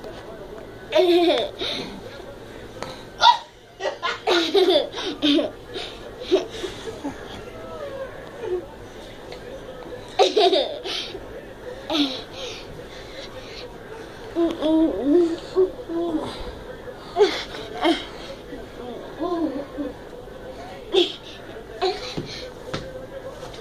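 A young girl squeals excitedly nearby.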